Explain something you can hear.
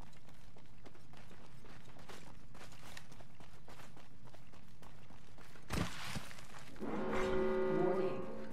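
Footsteps run quickly over gravel and dirt.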